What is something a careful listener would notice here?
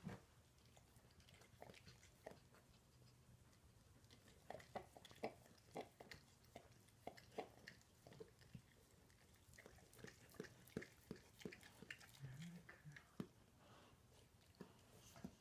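A dog licks a newborn puppy with wet smacking sounds.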